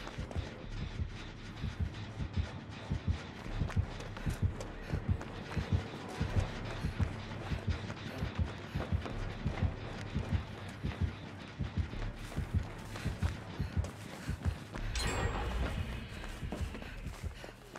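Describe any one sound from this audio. Footsteps run over rough ground and through grass.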